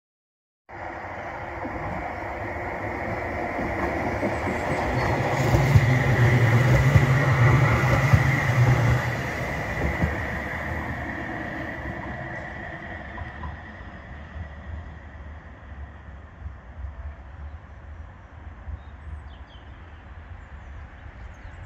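A tram rolls along the rails, passes close by and fades into the distance.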